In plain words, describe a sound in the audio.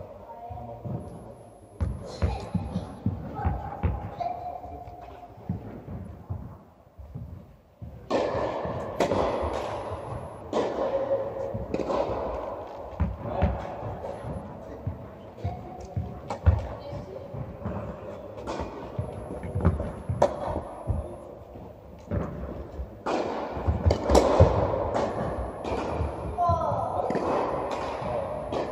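Tennis balls are struck with rackets, echoing in a large hall.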